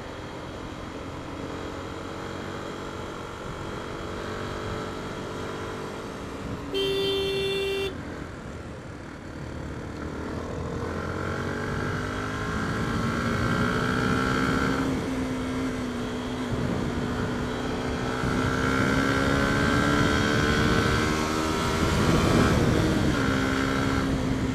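A single-cylinder 125cc motorcycle engine accelerates through the gears.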